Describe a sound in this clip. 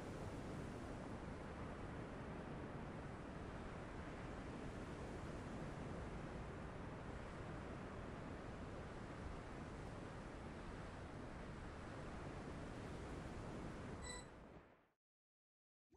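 Wind rushes steadily, then cuts off.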